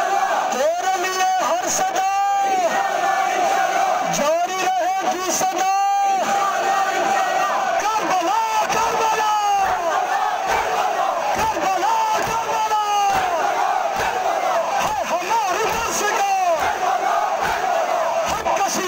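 Men rhythmically beat their chests with their hands.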